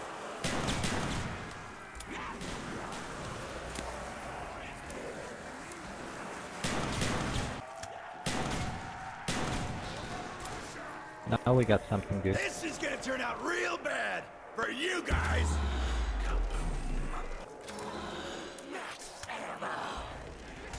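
A shotgun fires in a video game.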